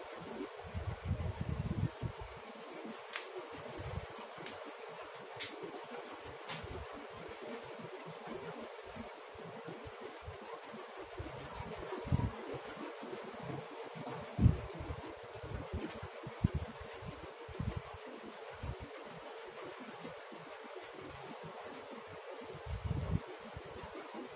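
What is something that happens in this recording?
Soft thumps of handling knock against the microphone.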